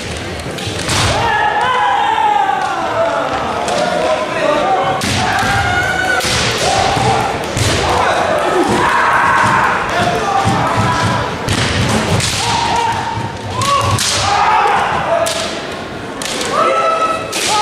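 A man shouts loud, drawn-out battle cries in a large echoing hall.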